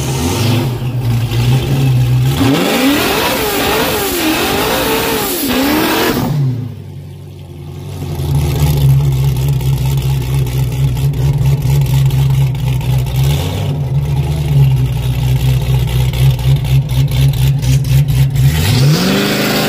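A car engine idles with a deep, loping rumble close by.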